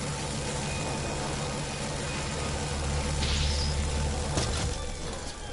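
Electricity crackles and buzzes.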